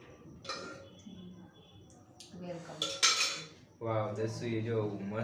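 Metal dishes clink and clatter.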